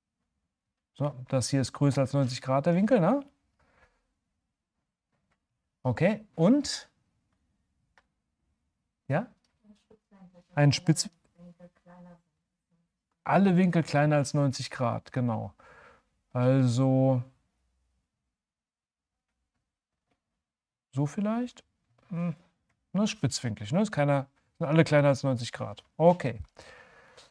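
A middle-aged man talks calmly and with animation close to a microphone, in bursts with pauses.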